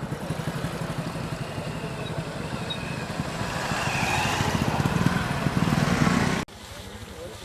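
Motorcycle engines hum as motorbikes ride past close by.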